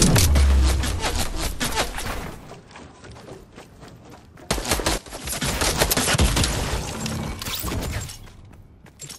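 Gunshots burst out in quick, loud volleys.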